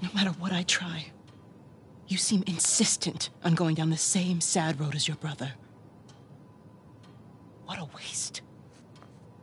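A middle-aged woman speaks calmly and quietly nearby.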